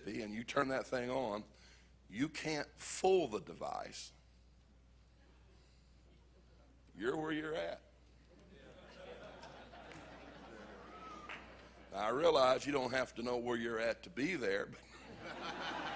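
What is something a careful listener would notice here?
A middle-aged man speaks with animation through a microphone, with pauses between phrases, in a large echoing hall.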